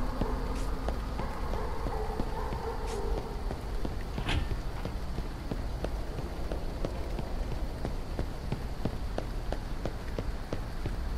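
Footsteps tread steadily on hard pavement.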